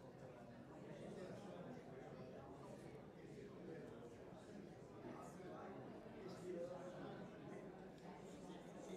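A seated crowd murmurs and chatters quietly in a large room.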